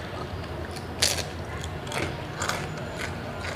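Crispy fried food crackles as it is bitten.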